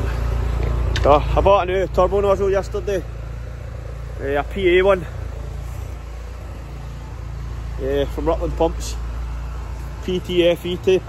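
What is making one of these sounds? A man talks close by, calmly and in short phrases.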